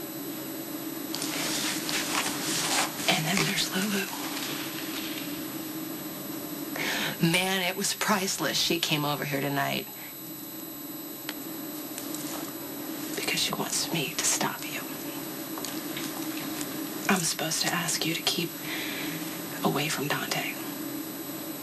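A woman speaks earnestly and emotionally, close by.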